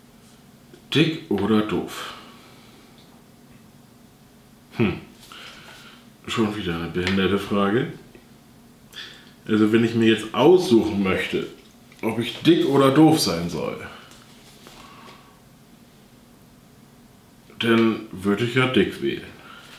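A young man talks calmly and close by, in short bursts with pauses.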